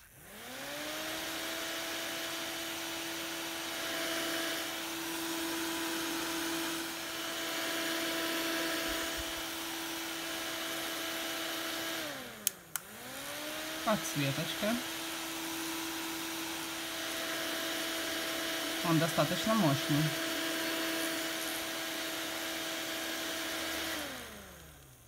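A small handheld fan whirs steadily, spinning down and back up once.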